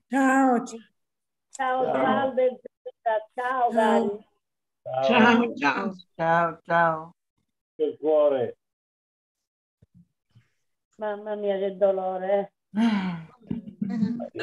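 An elderly woman speaks calmly through an online call.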